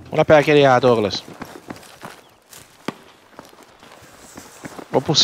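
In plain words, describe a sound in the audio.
Footsteps tread on a stone path.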